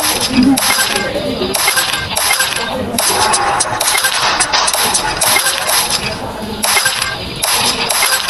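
Marbles click and clatter as they roll and collide.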